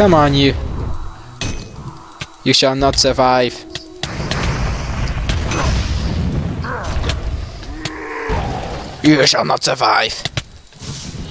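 Sword blows land with sharp hits.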